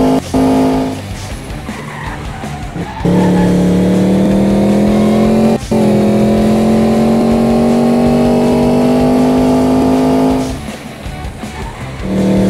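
Tyres screech as a racing car drifts through a bend.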